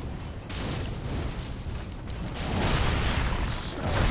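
A sword clashes against enemies in combat.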